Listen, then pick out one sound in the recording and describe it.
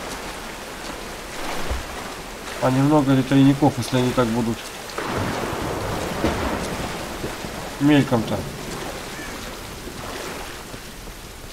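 Water sloshes and splashes as someone wades through it.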